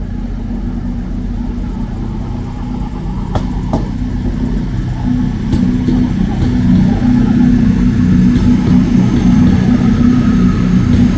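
A diesel train engine drones steadily as the train rolls past, growing louder.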